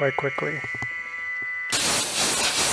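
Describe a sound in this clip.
Coolant sprays and splashes onto metal.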